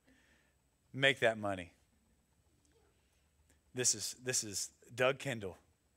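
A man speaks animatedly through a microphone in short bursts.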